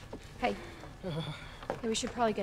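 A young woman speaks with concern close by.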